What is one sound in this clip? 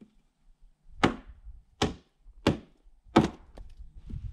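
A hatchet chops sharply into wood several times.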